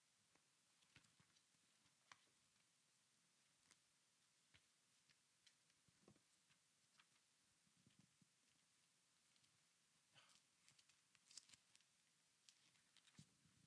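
Paper rustles softly in a man's hands.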